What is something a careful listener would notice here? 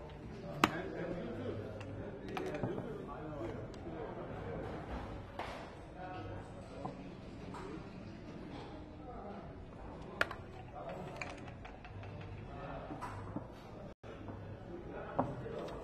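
Checkers click as they are moved on a wooden board.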